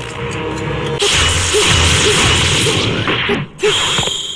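An energy blast roars and sizzles.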